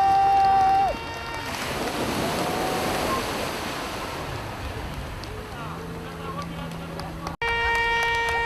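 Swimmers splash through open water.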